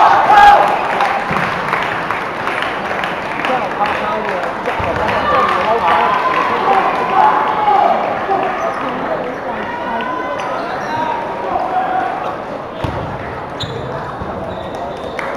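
A large crowd of children chatters and calls out in an echoing hall.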